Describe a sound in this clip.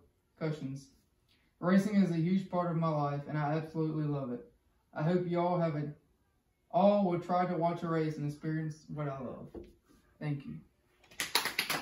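A young man speaks calmly, reading aloud close by.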